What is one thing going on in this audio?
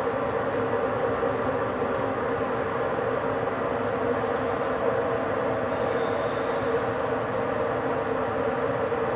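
A train rolls steadily along the rails with a low, even rumble.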